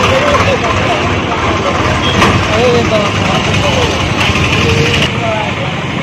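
A tractor engine rumbles past on a street.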